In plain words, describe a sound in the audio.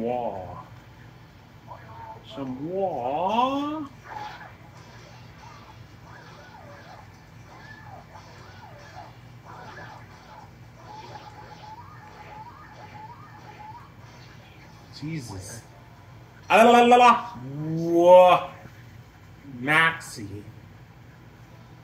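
Video game music and fight effects play from a television.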